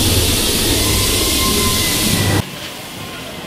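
A ride car rumbles and rattles loudly along its track, close up.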